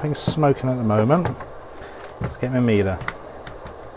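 A knob on a meter clicks as it is turned.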